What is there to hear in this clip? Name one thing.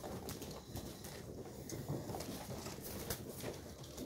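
Pigeon wings flap in a sudden burst.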